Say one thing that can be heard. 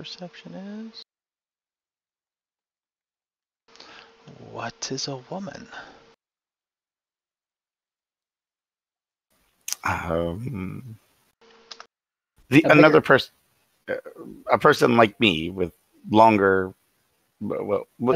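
Several men talk with animation over an online call.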